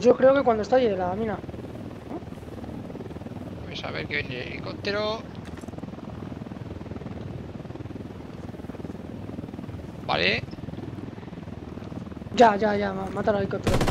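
A helicopter hovers overhead with a thudding rotor.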